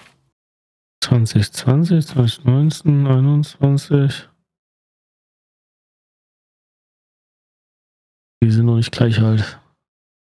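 A young man talks animatedly, close to a microphone.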